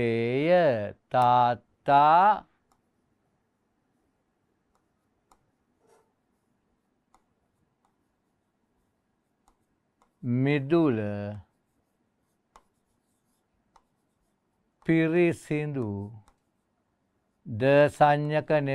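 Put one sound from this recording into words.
A middle-aged man speaks calmly and clearly into a microphone, in short phrases with pauses.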